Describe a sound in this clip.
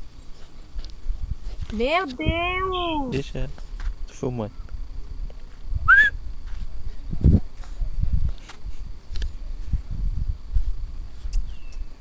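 A small dog digs fast in loose dirt, paws scraping and scattering soil.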